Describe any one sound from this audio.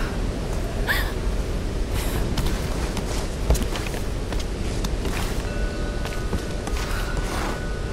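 Footsteps crunch through grass and undergrowth.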